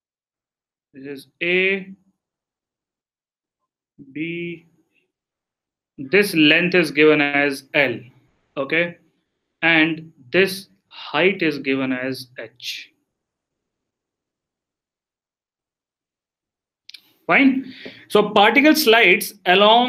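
A man speaks calmly into a close microphone, explaining.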